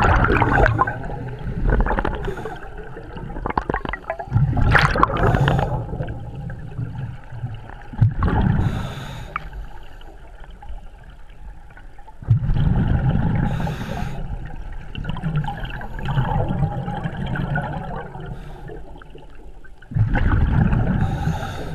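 Bubbles from a diver's breathing gear gurgle and rumble underwater in repeated bursts.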